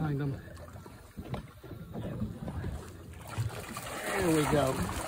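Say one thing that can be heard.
Water laps and splashes against the side of a boat.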